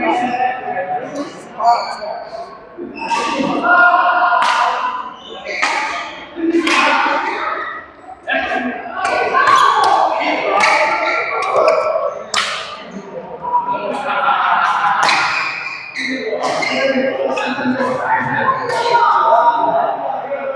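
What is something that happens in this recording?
Badminton rackets strike a shuttlecock back and forth in an echoing hall.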